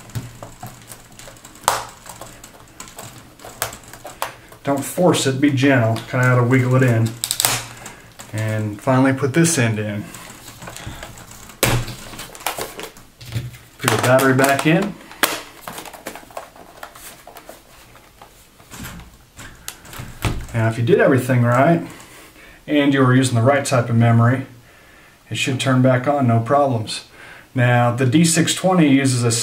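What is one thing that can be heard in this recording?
Plastic clicks and knocks as a laptop is handled.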